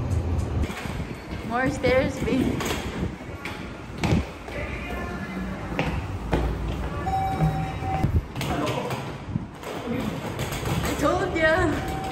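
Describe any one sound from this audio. Heavy suitcases knock against stairs as they are carried up.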